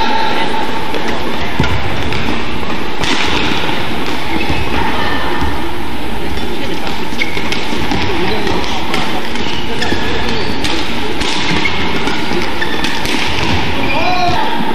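Sports shoes squeak on a court floor.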